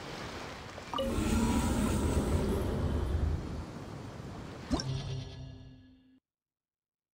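A portal roars and swirls with a deep whooshing rumble.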